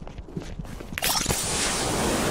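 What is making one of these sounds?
A loud whooshing blast rushes in and holds.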